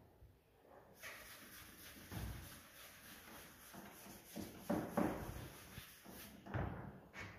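Chalk scratches and taps on a board.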